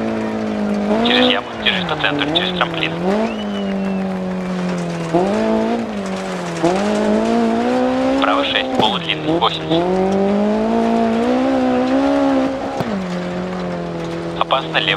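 Gravel crunches and sprays under tyres.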